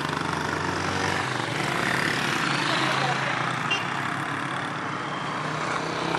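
Motorcycles ride past close by.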